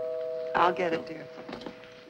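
A woman exclaims briefly, close by.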